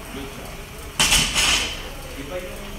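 A heavy barbell with weight plates clanks loudly.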